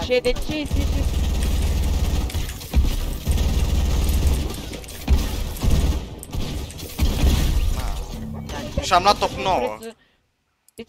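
Video game gunfire cracks in quick bursts.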